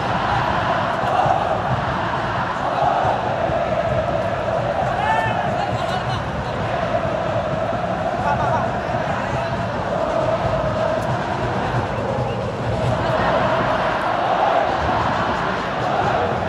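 A huge stadium crowd chants and sings loudly in unison, echoing around the stands.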